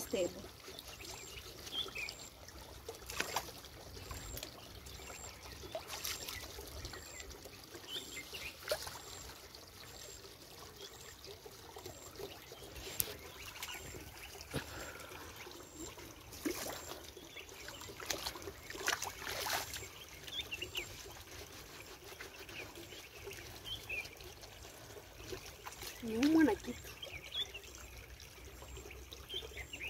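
Water drips and trickles as hands scoop it.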